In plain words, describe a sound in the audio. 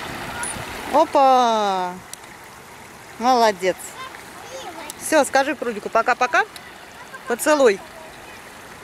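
A young child calls out in short, high bursts close by.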